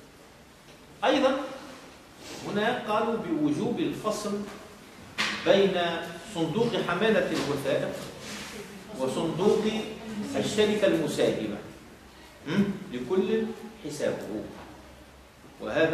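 A middle-aged man speaks calmly and steadily, as if lecturing.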